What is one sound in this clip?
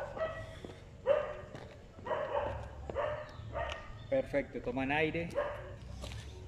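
Shoes land lightly and rhythmically on concrete.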